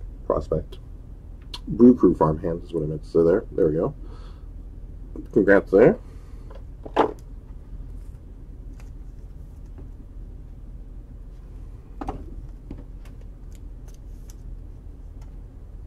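Plastic card holders tap and rustle as they are handled.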